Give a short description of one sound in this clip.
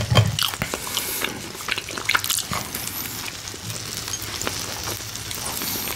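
Crispy bread crackles as a man breaks it apart.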